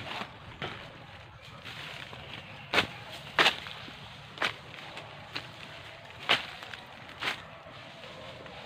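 Footsteps crunch through dry leaves and brush.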